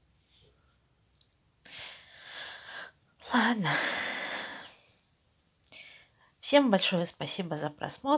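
A hand rubs softly against a cat's fur.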